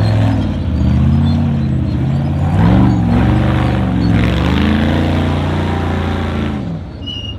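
Rocks and gravel crunch under the buggy's tyres.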